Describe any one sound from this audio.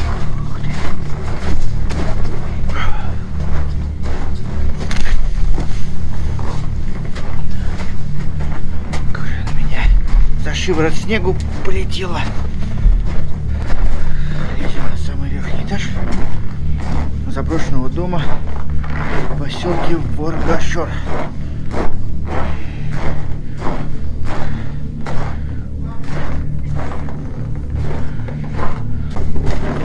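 A man talks with animation, close to the microphone.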